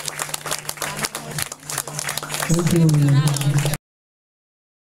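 A group of people clap their hands in rhythm.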